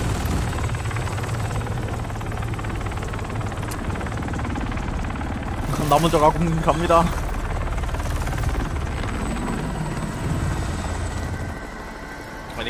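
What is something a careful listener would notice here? A helicopter's rotor thumps and roars steadily overhead.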